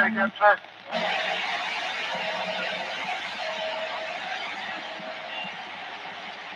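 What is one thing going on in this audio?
Static hisses steadily from a radio loudspeaker.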